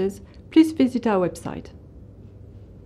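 A woman speaks calmly and clearly, close by.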